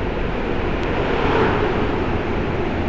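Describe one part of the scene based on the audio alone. A bus roars past close by.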